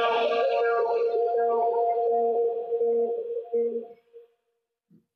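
Piano notes play a quick melody and then stop.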